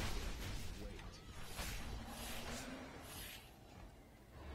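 Magic spells whoosh and crackle in a game.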